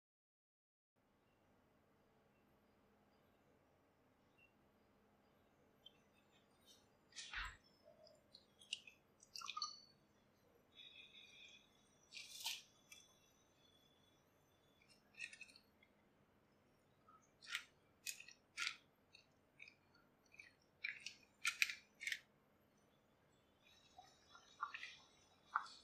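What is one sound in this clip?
Water bubbles and boils in a pan.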